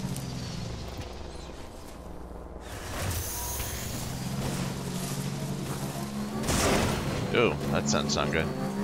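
Footsteps crunch on grass and rough ground.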